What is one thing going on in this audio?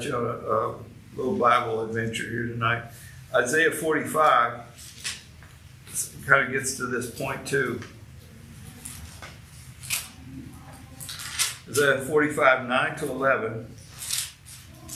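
A middle-aged man speaks calmly into a nearby microphone, with pauses.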